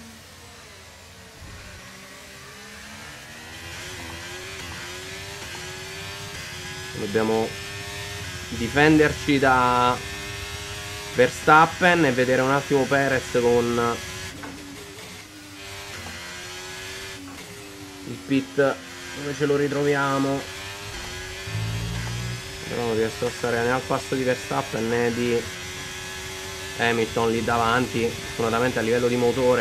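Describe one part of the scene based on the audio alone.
A racing car engine whines and revs up and down through gear changes.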